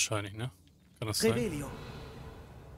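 A magical burst whooshes and shimmers.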